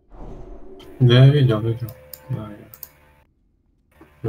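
A magic spell crackles and hums.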